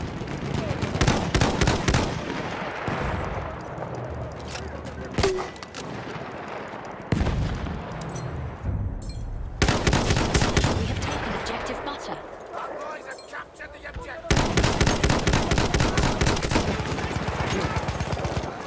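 A rifle fires in sharp, loud cracks.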